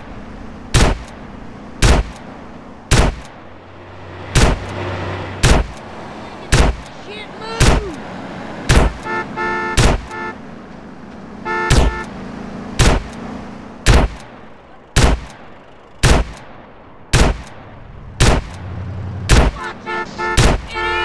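Rifle shots ring out one after another at a steady pace, each with a short echo.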